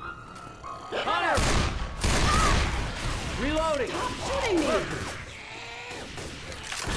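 Monsters shriek and growl close by.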